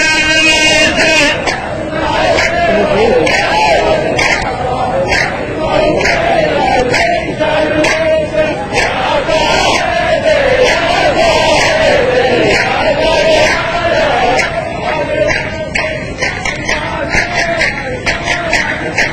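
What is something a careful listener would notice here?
A middle-aged man chants in a drawn-out, melodic voice through a microphone.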